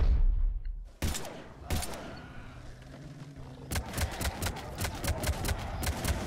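A gun fires loud shots in quick bursts.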